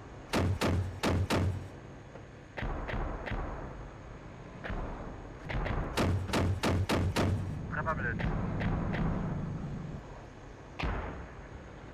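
Heavy cannon rounds fire and explode in quick bursts, with booming rumbles.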